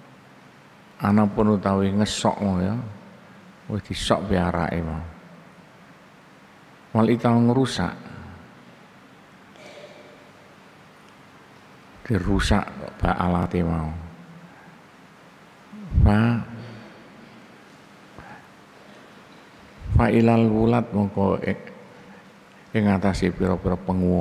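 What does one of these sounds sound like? An elderly man speaks calmly into a microphone in short bursts with pauses.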